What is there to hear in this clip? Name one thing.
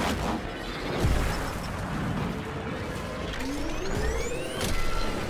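A hoverboard engine roars and whooshes at speed.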